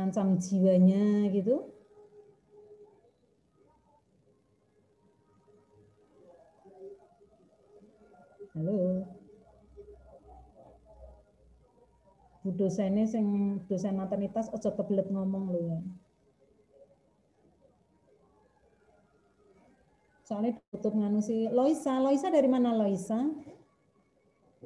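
A woman speaks over an online call, in short bursts with pauses.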